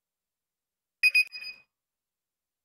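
A cash register chimes.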